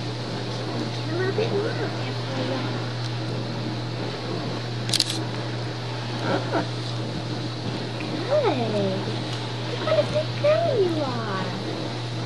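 A baby whimpers and fusses close by.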